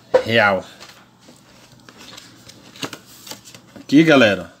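A paper card rustles and flaps between fingers.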